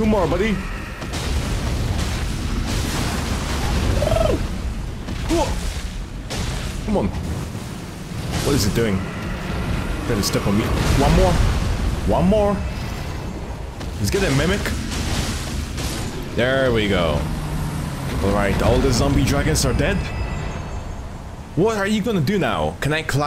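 A huge beast growls and thuds heavily.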